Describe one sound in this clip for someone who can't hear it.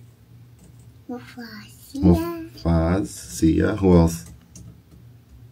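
A toddler girl babbles softly into a microphone.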